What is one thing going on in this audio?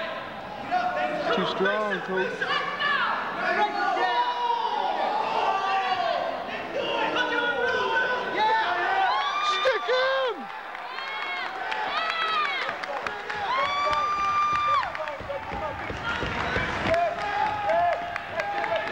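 Men in a crowd shout and cheer loudly in an echoing hall.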